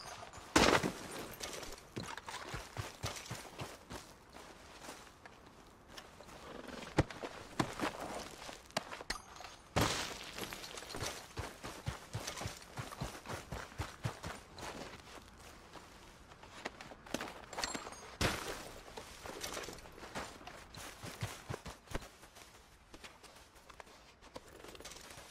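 Footsteps crunch through snow and brush grass.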